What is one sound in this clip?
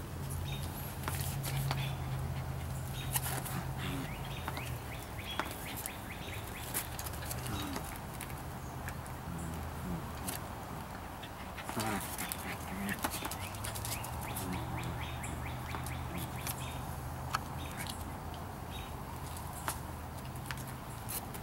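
Puppies yip and squeal playfully.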